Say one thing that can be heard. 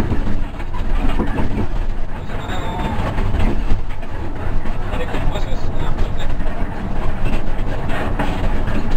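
A bus rattles and shakes as it drives along a road.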